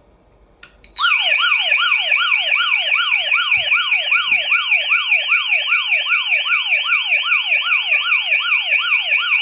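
An alarm siren wails loudly in a fast, repeating up-and-down pattern.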